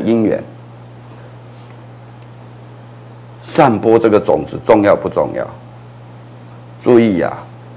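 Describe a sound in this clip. An elderly man speaks calmly and earnestly into a close microphone, with pauses.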